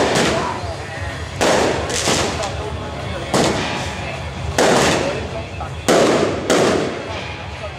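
Firecrackers burst loudly outdoors, one blast after another.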